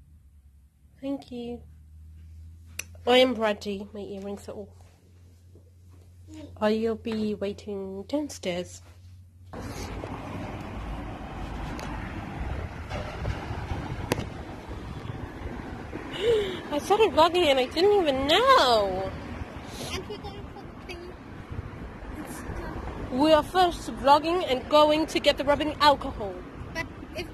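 A young woman talks close to a phone microphone, in a casual voice.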